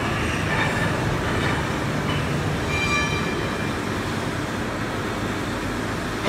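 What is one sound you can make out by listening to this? A machine hums and rumbles steadily.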